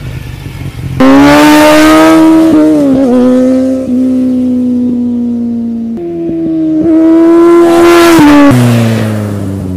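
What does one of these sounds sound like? A motorcycle engine revs loudly and whines as it shifts gears.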